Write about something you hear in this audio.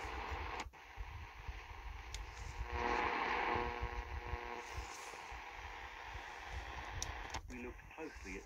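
Static hisses and warbles from a small radio as its dial is turned.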